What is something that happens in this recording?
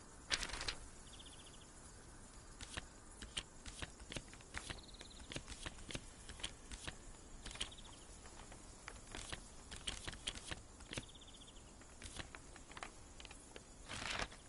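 Short game menu clicks tick as options change.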